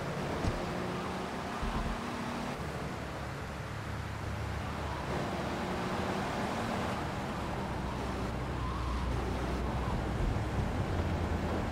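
A car engine hums and revs as a car drives along a street.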